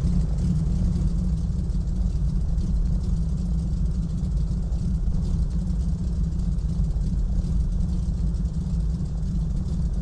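A small propeller plane's engine drones steadily at idle.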